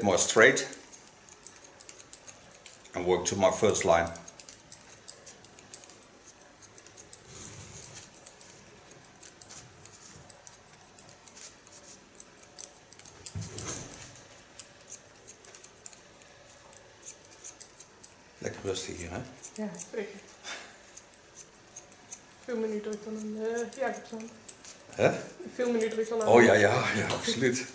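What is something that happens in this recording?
Scissors snip through hair.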